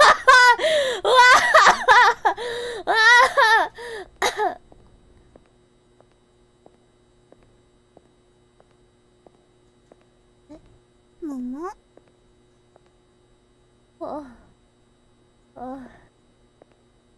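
A young woman talks with animation into a microphone, squealing and laughing.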